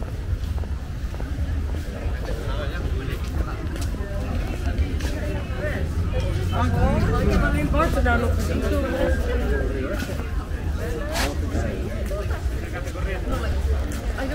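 A crowd of people chatter nearby outdoors.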